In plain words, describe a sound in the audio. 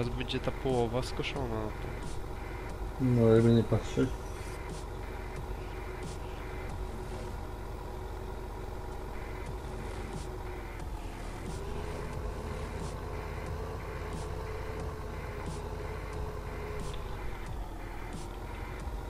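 A tractor engine hums steadily as the tractor drives.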